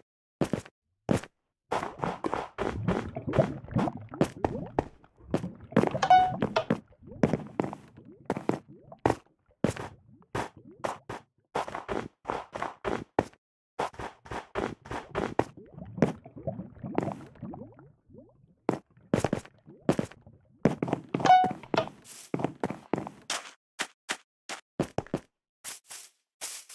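Footsteps patter quickly on hard blocks.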